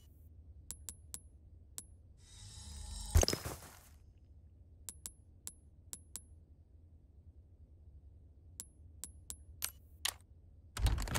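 Short interface clicks tick as a menu selection moves.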